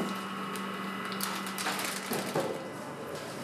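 Plastic wrap crinkles under handling.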